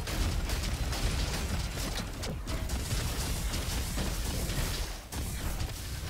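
Gunshots fire rapidly in a video game.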